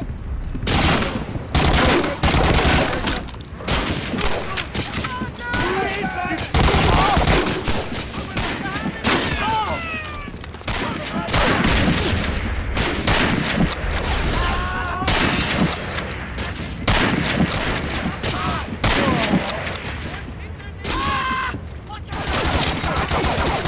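Gunfire bursts loudly and repeatedly.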